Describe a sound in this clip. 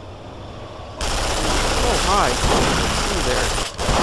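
A heavy machine gun fires in rapid, loud bursts.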